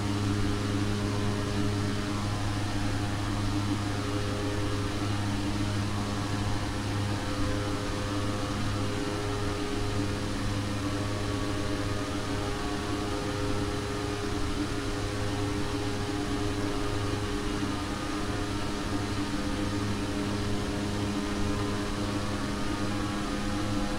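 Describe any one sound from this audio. A steady aircraft engine drones throughout.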